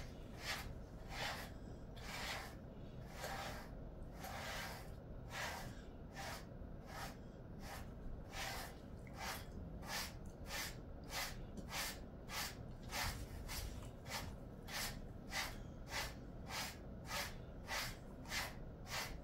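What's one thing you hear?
A brush sweeps through a dog's fur in quick, regular strokes.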